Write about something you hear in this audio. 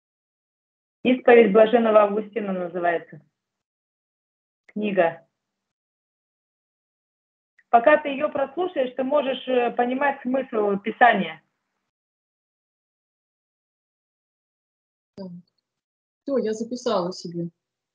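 A woman speaks with animation over an online call, in bursts with pauses.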